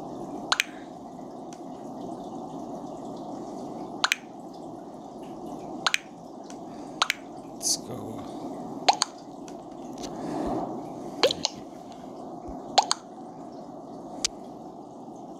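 Game voting beeps pop in one after another.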